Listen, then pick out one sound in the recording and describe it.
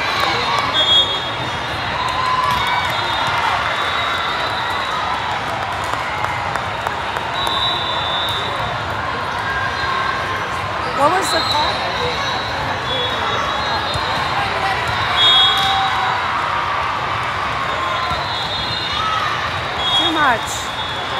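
A volleyball thumps off a player's arms.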